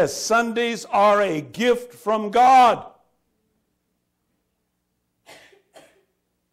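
A man speaks through a microphone in a large echoing hall, pausing between phrases.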